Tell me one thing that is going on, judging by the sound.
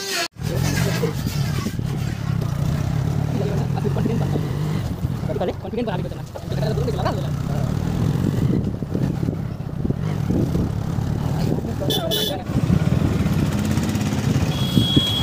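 A motorcycle engine hums steadily as it rides along.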